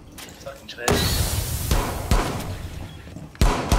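Rapid gunshots blast in bursts.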